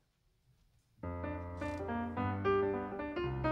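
A piano plays a lively jazz tune.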